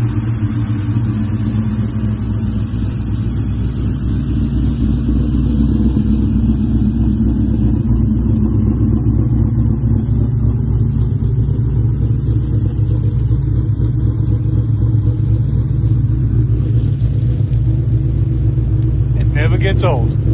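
A car engine idles with a deep, steady exhaust rumble close by.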